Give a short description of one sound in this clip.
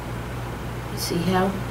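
A woman speaks briefly and calmly nearby.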